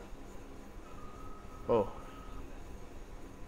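A game menu gives a short electronic beep.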